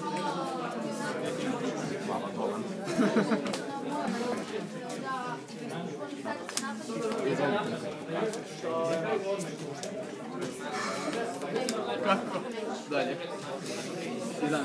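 Cards slap softly onto a wooden table.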